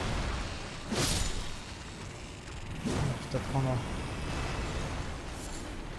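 A sword strikes a giant crab with heavy thuds.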